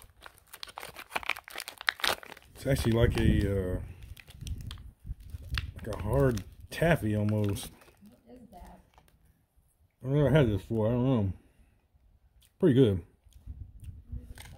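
A foil pouch crinkles and rustles as it is torn open.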